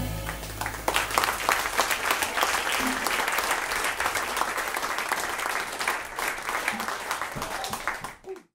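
A drummer plays cymbals and drums with quick strokes.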